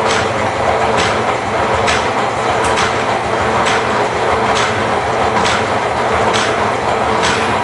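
A power hacksaw cuts through metal with a steady, rhythmic back-and-forth rasp.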